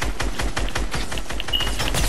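A shotgun fires.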